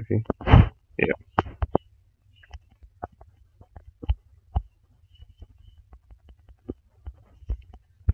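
Short menu clicks tap now and then.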